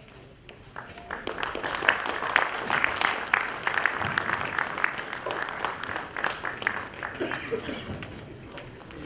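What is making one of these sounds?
Applause rings out in a large hall.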